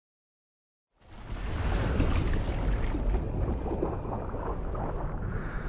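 Bubbles rush and gurgle underwater.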